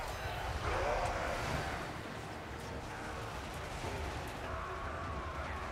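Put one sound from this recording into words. Spells burst with loud crackling blasts.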